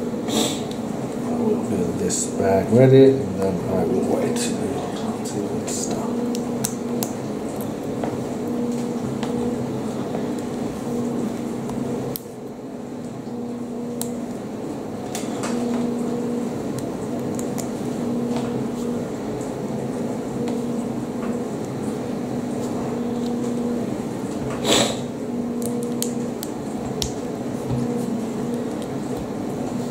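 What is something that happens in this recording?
Small plastic pieces click together as they are snapped in place.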